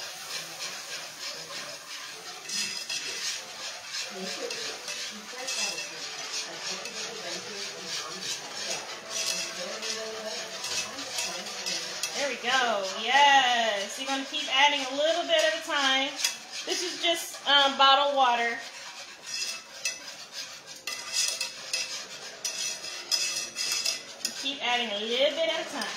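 Food sizzles and crackles in a frying pan.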